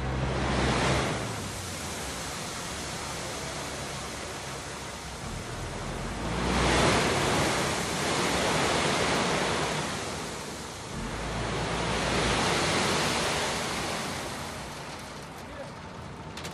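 Gravel pours and rumbles from a tipping dump truck.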